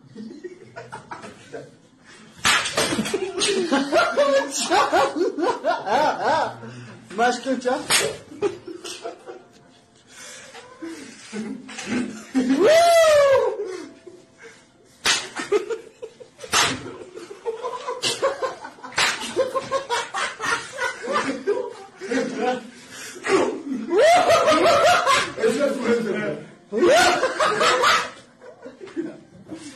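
Several men talk and laugh loudly with animation close by.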